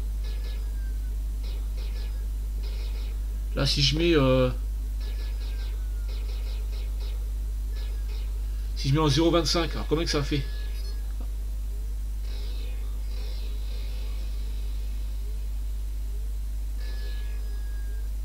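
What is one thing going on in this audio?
Retro video game sound effects beep and zap softly.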